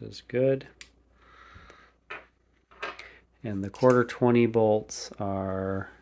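Small metal parts clink softly on a wooden table.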